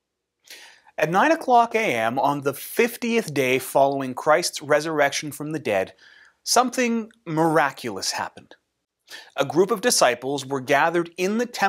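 A man talks calmly and with animation, close to a microphone.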